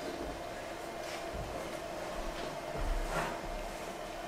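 Footsteps patter across a floor in a large room.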